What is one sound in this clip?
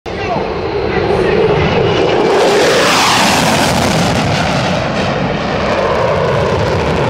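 A jet engine roars loudly overhead, its pitch sweeping as the jet passes.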